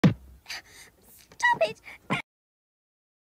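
A young girl laughs happily.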